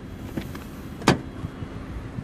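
A car door unlatches and swings open.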